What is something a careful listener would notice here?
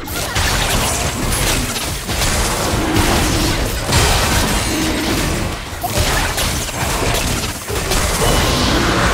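Magic spells whoosh and crackle in rapid bursts.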